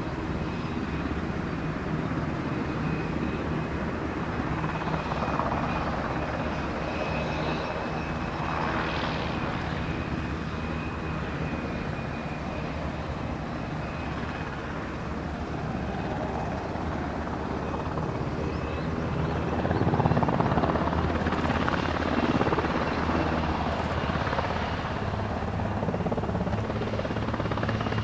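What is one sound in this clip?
Turbines of an MH-60S Seahawk helicopter whine at a steady pitch.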